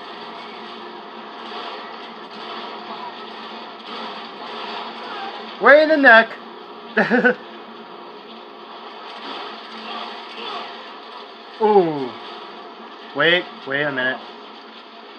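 Video game sounds play from a television.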